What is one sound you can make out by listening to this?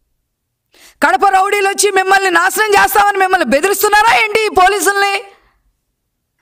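A woman speaks forcefully into a microphone.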